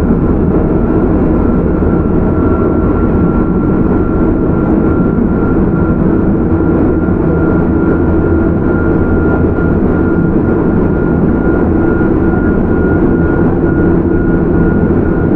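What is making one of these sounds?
An electric train's motor whines at a steady, high pitch.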